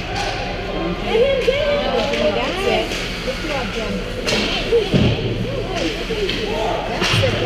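Young players shout to each other across the rink.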